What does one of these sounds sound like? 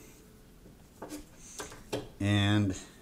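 A plastic charger is set down on a hard surface with light knocks.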